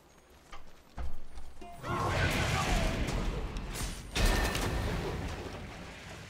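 Magic blasts and clashes of a fight burst out loudly.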